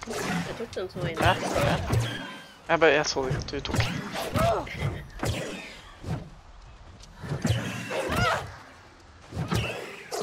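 Blades clash and swish in a fight.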